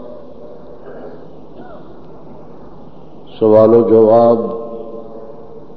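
An elderly man speaks through a microphone, sometimes raising his voice into a chant.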